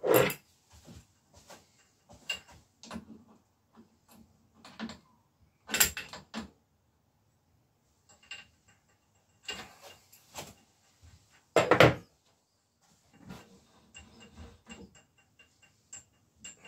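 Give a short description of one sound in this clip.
Metal parts click and clatter as a bicycle frame is handled.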